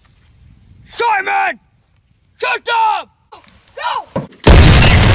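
A boy screams loudly close by.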